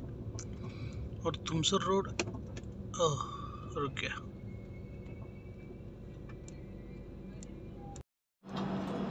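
A train rumbles along the tracks.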